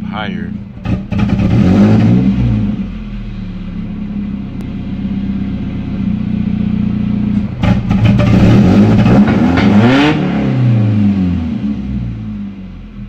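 An inline-four car engine revs up and falls back.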